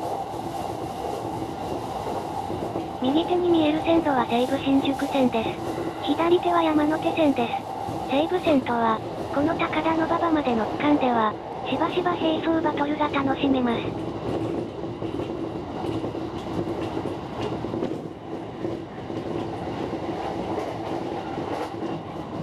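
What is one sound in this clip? A train rolls steadily along the tracks with a low rumble.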